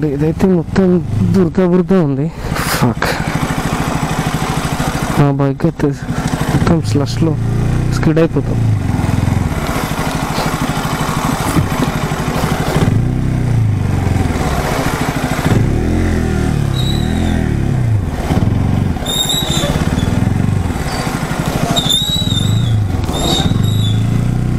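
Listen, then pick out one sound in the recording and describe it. Tyres squelch through wet mud.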